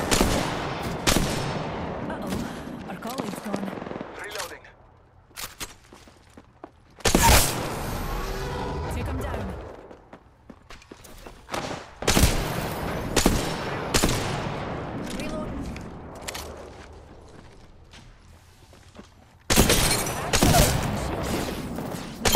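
Gunshots fire in sharp bursts.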